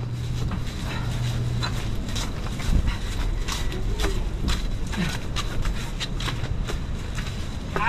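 A plastic bag rustles as it swings.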